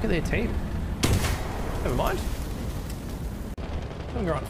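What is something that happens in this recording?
A tank explodes with a loud blast and roaring fire.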